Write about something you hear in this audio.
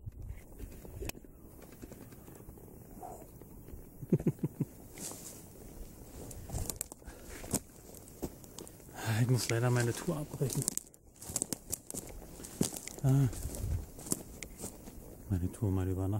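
Footsteps crunch on dry forest ground.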